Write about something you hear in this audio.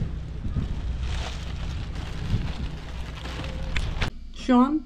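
A plastic sheet rustles and crinkles.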